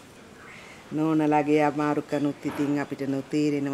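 An older woman speaks softly and close by.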